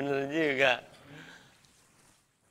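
A man laughs loudly nearby.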